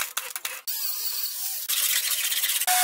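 A grinder grinds metal with a harsh whine.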